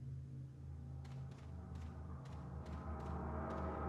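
Footsteps crunch slowly on damp ground.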